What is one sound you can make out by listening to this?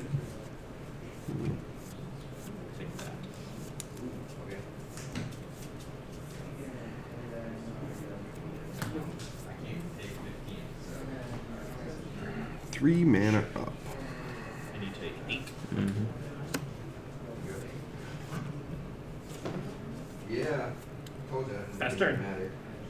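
Playing cards rustle and tap softly as they are shuffled in hands.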